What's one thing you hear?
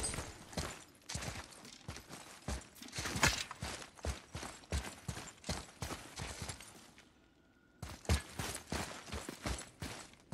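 Heavy footsteps thud on a stone floor.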